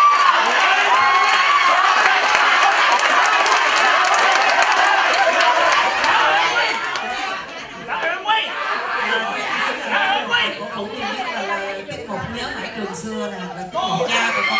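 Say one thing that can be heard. A man laughs on stage.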